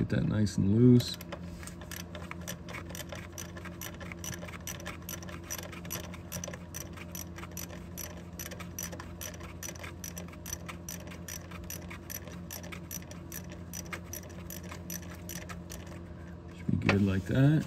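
An engine ticks rapidly and evenly.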